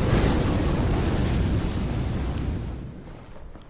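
Fire roars loudly.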